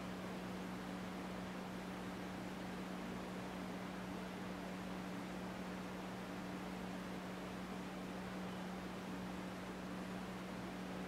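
A man hums a long, steady low note.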